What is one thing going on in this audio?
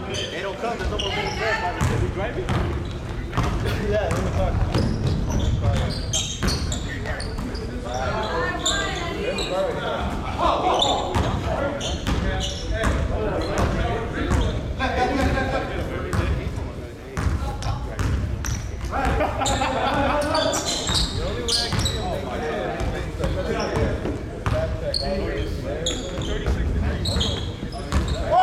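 Young men shout and call out to each other, echoing in a large hall.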